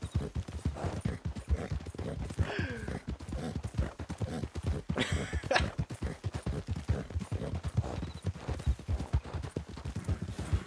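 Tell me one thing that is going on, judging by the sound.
Horse hooves gallop quickly over a dirt track.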